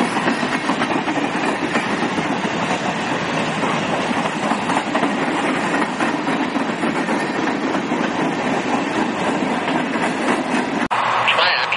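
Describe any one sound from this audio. Loaded freight cars rumble and clatter steadily along the rails close by.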